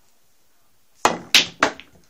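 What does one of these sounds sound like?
A cue taps a snooker ball with a sharp click.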